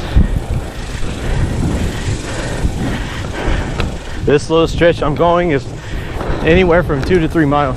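Inline skate wheels roll and rumble over rough pavement.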